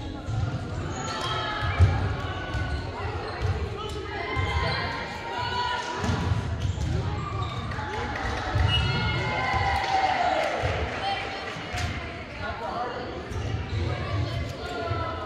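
Sneakers squeak on a wooden court floor.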